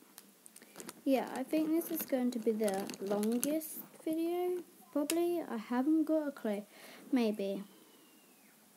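A girl speaks calmly, close by.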